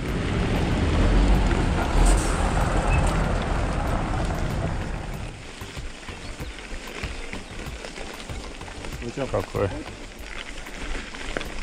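Bicycle tyres crunch over gravel.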